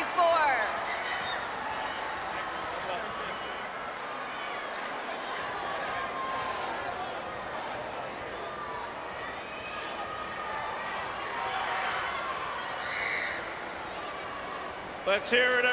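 A large crowd cheers and chatters in a big stadium.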